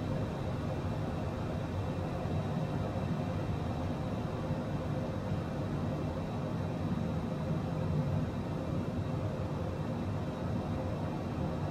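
A jet engine hums steadily inside a cockpit.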